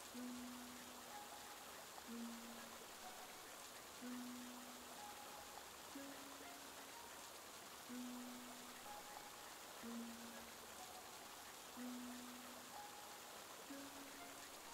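Water splashes steadily in a fountain.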